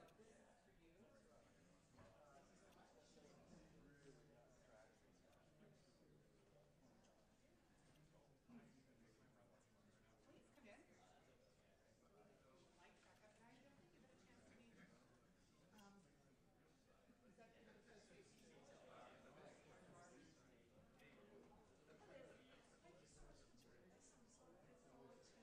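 A crowd of men and women chatter quietly in a large room.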